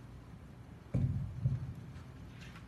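A microphone thumps as it is adjusted.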